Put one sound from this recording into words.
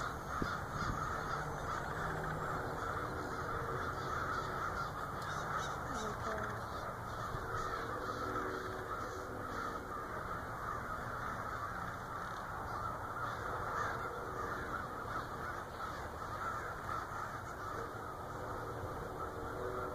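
A large flock of birds chatters and calls overhead.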